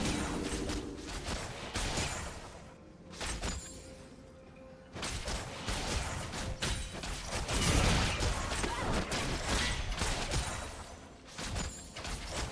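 Magic spells burst and crackle in quick, sharp bursts.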